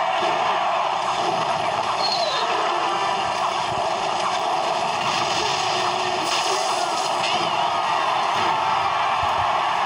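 Small figures clash in a game battle with hits and blasts.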